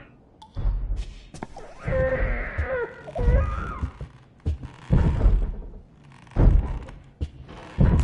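Slow footsteps thud on a floor close by.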